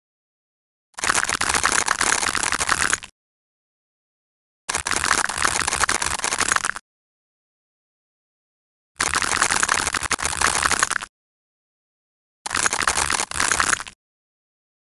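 A blade cuts through a block, sending small pieces crumbling and rattling down in bursts.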